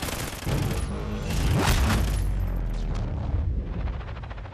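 Rapid gunfire rattles loudly in a video game.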